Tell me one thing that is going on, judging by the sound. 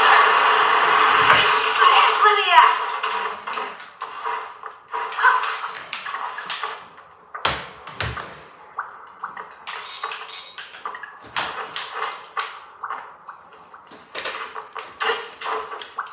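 Video game fight sounds of hits and blasts play through a television speaker.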